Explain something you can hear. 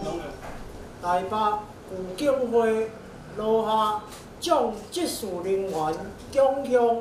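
A group of young men chant a prayer together, close by.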